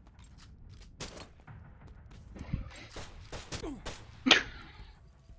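Game pistol shots crack in quick succession.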